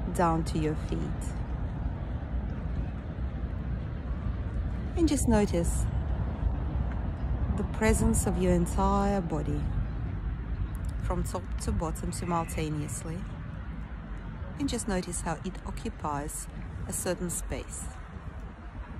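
A woman speaks calmly, close up.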